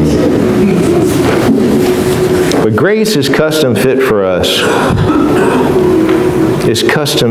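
A man preaches with animation through a microphone in a large hall.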